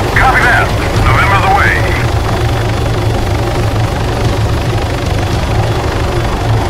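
A helicopter rotor thumps steadily up close.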